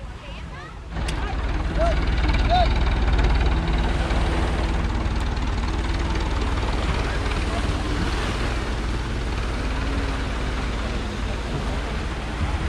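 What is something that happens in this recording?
Waves wash onto a beach nearby.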